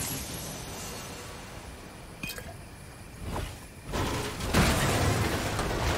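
A chest creaks open with a bright jingle.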